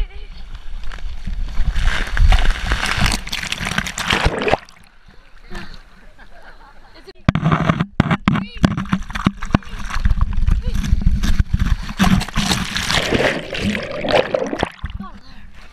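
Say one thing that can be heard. Water rushes and splashes loudly around a sliding boy.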